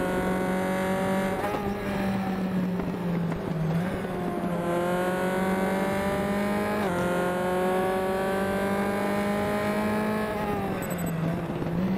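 A racing car engine roars steadily, its pitch climbing as it speeds up and dropping sharply at each gear change.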